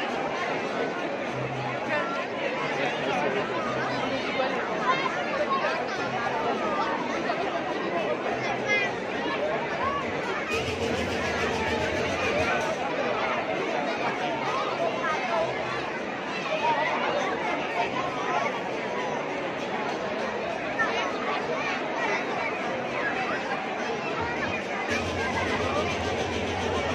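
A large crowd outdoors chatters and shouts all around.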